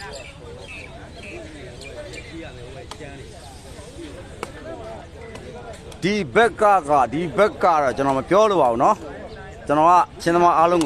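A crowd of onlookers chatters in the background.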